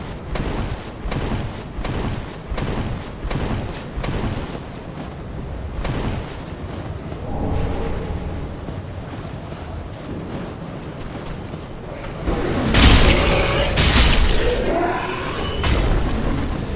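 Armoured footsteps crunch along at a run.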